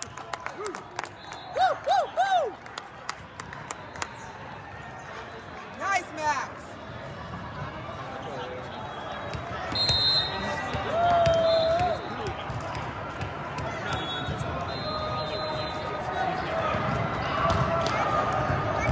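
A volleyball is struck with dull thumps.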